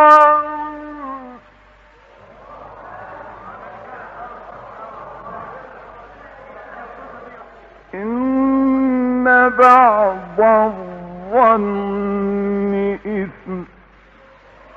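A man chants in a long, drawn-out melodic voice, heard through an old recording.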